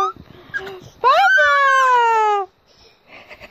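A baby squeals loudly and shrilly up close.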